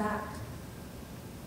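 A woman speaks clearly through a microphone in a large hall.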